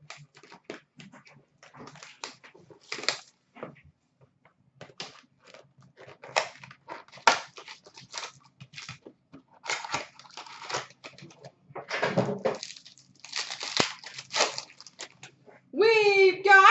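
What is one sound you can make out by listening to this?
Card packs rustle and crinkle as hands handle them.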